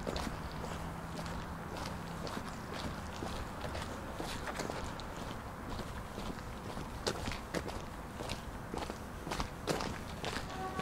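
Footsteps crunch steadily along a paved path.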